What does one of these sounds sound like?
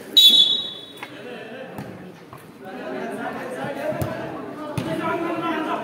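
A ball is kicked with dull thumps on a hard court.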